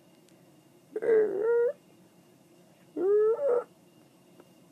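A cat meows loudly twice, close by.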